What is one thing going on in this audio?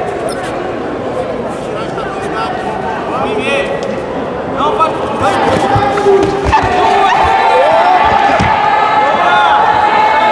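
A crowd of spectators shouts and cheers in a large echoing hall, growing louder partway through.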